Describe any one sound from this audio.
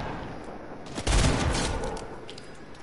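Gunfire rattles in quick bursts.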